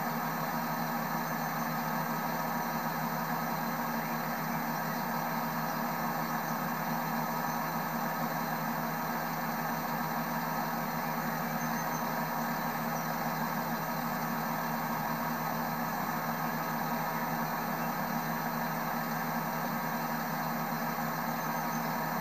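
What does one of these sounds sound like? A diesel train engine idles with a steady, low hum.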